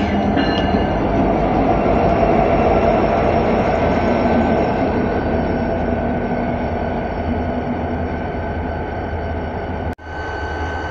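Train wheels roll and clatter over the rails.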